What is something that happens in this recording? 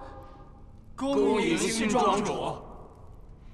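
A group of men and women call out together in unison.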